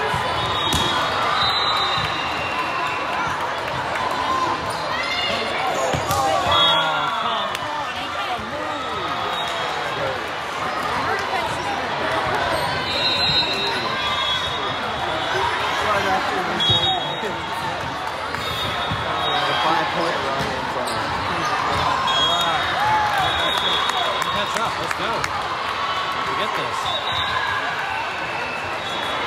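Young women players call out and shout to each other.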